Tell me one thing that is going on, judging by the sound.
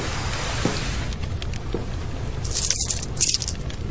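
Coins clink and jingle as a hand rummages through them.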